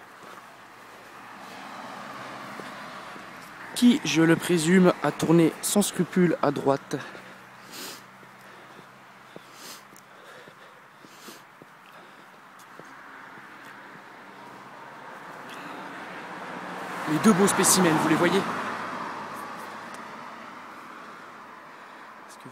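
A car drives past on a nearby road, its engine rising and then fading.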